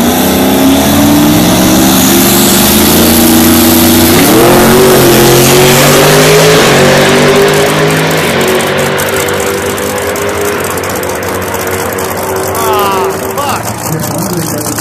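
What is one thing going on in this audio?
A race car engine roars loudly, rising in pitch as the car launches and speeds away into the distance.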